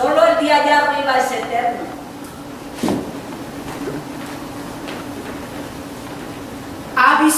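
A woman sings out loudly in a large echoing hall.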